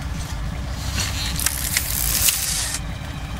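A hand-cranked device whirs as it is wound.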